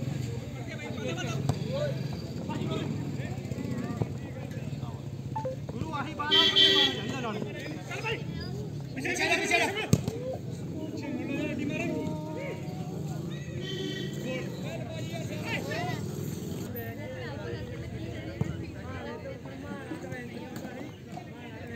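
Young men shout to each other across an open field outdoors.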